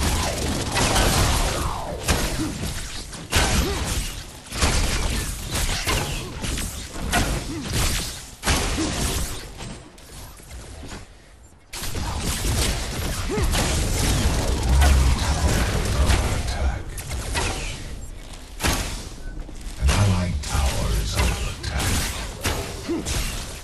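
Fiery explosions boom with deep rumbles.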